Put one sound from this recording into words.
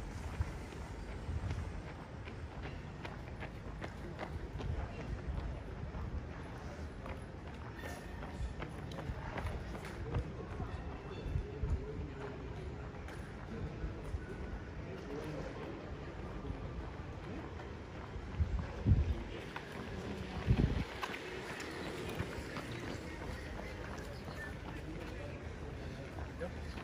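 Footsteps of a runner thud steadily on pavement close by.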